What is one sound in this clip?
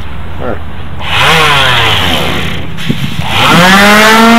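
An electric sander whirs up to speed and buzzes loudly against wood.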